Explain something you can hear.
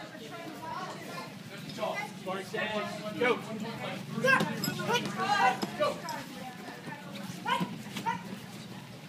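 Men, women and children call out and chatter nearby in a large echoing hall.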